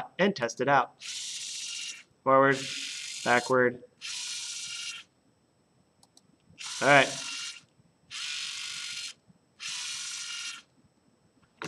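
A small electric motor whirs in short repeated bursts.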